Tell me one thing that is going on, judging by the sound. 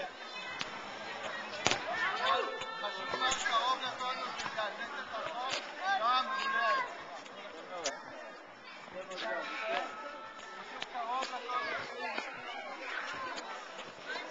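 A boy kicks a soccer ball with dull thumps.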